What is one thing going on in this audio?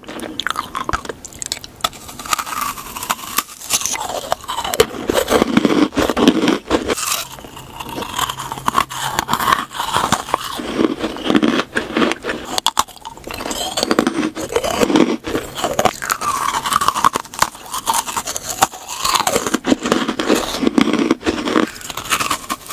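A woman chews and smacks her lips wetly close to a microphone.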